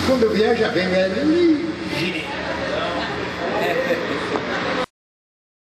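An accordion plays a lively tune.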